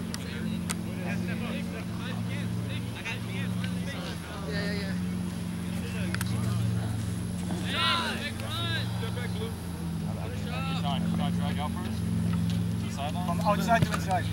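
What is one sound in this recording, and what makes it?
Teenage boys shout and call to each other across an open field.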